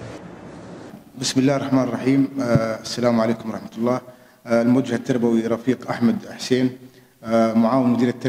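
A man speaks calmly and steadily into a nearby microphone.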